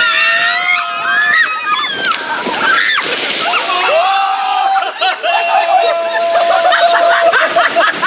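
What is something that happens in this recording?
A young woman screams.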